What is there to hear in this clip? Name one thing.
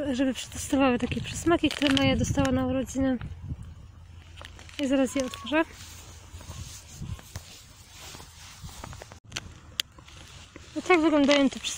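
A plastic treat bag crinkles in a hand.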